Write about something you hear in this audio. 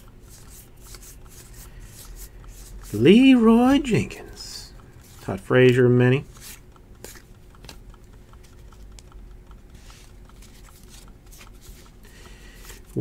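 Trading cards shuffle and rustle between fingers.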